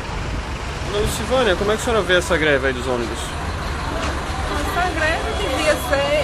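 A middle-aged woman speaks calmly and close.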